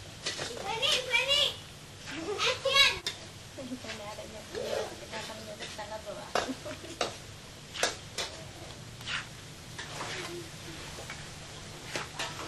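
Hands squelch and slap through a pile of wet fish.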